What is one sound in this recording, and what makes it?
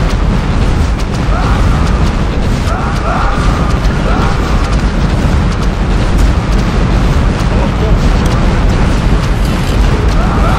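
Explosions crack and burst among the ships.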